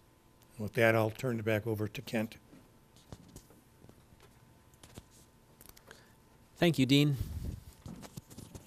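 A man speaks calmly into a microphone, in short bursts.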